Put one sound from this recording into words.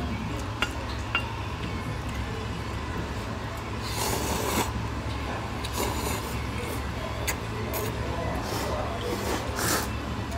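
Men slurp noodles.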